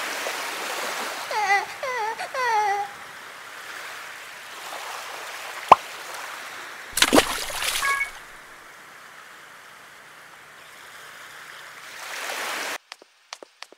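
Sea waves wash steadily.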